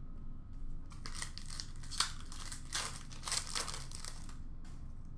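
Foil card packs rustle and crinkle as hands sort through them.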